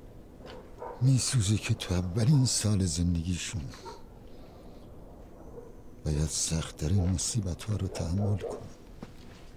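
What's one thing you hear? A middle-aged man speaks calmly in a low voice, close by.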